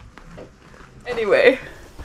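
A woman speaks loudly with animation close by.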